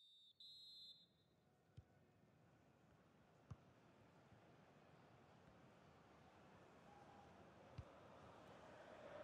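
A stadium crowd murmurs and cheers steadily in the distance.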